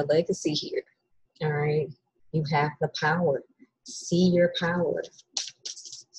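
A young woman speaks close by, casually and with animation.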